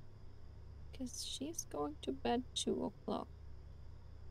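A young woman speaks briefly and casually into a close microphone.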